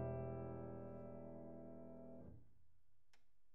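A piano chord rings out and slowly fades away.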